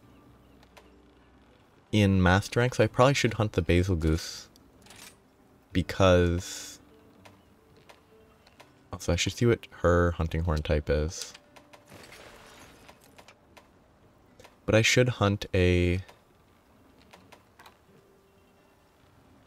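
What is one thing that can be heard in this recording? Short game menu blips sound as selections change.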